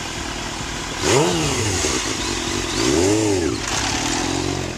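A motorcycle engine revs sharply several times.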